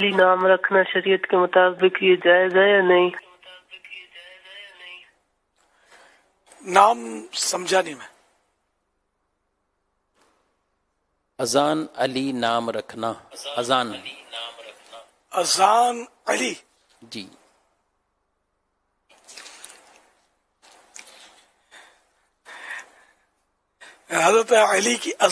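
An elderly man speaks calmly and warmly into a microphone.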